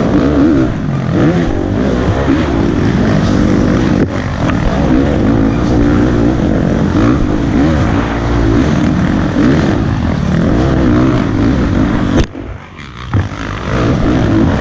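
A dirt bike engine revs loudly up close, rising and falling in pitch, and briefly drops off.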